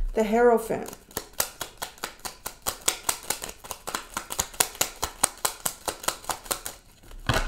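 Cards shuffle with rapid soft clicks.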